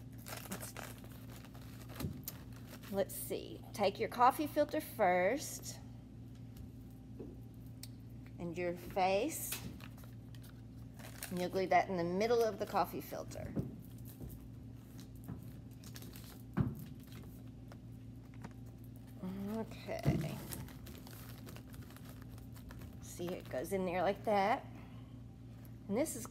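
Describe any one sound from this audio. Paper filters rustle and crinkle in hands.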